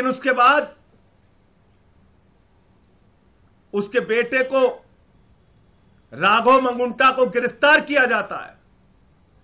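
A middle-aged man speaks firmly into a microphone, in short bursts with pauses.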